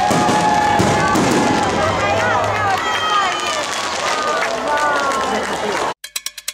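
Fireworks whistle as they shoot up.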